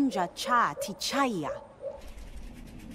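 A young woman speaks earnestly, close by.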